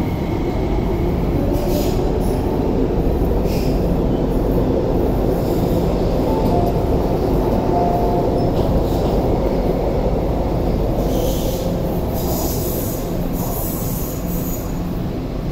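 Train wheels click and squeal on the rails.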